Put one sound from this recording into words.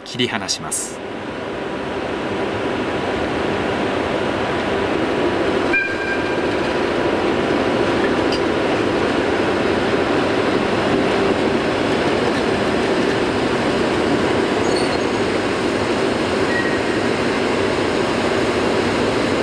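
An electric locomotive rumbles and hums as it slowly pulls away.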